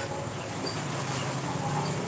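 A spoon stirs food in a pot.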